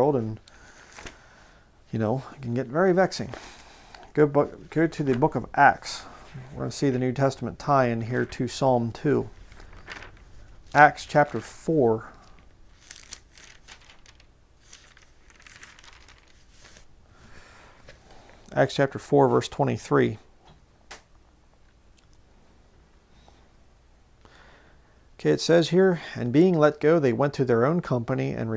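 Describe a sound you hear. A man speaks calmly and close to a microphone, with pauses.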